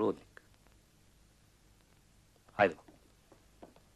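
A young man speaks loudly in short, sharp bursts close by.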